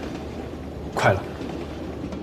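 A young man answers briefly and calmly.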